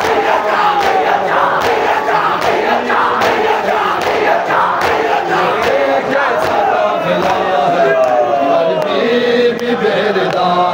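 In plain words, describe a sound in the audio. A large crowd of men chants loudly in unison in a large echoing space.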